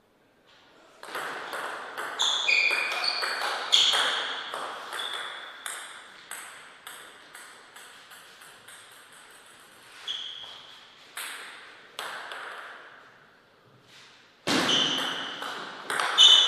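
A table tennis ball clicks rapidly off paddles and a table in a quick rally.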